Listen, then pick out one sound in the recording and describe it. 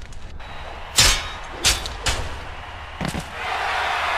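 Metal blades clang sharply a few times.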